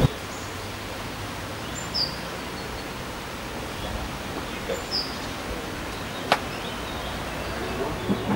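Wind rustles through leafy trees outdoors.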